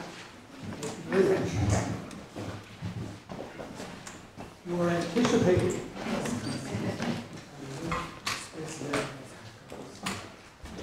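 A man speaks quietly near a microphone.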